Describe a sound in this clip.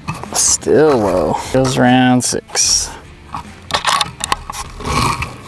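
Metal parts of a rifle click and clatter as they are handled.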